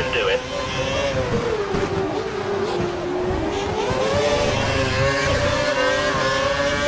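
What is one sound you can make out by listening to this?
A racing car engine whines loudly, its pitch dropping and then rising again as the car shifts gears.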